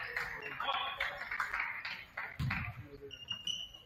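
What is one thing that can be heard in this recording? Young men call out and talk in a large echoing gym.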